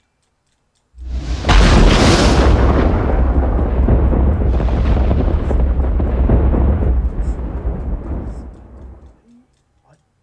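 Electricity crackles and roars loudly, then fades away.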